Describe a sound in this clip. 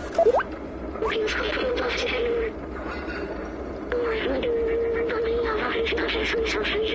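A small robot chirps and warbles electronically in short bursts.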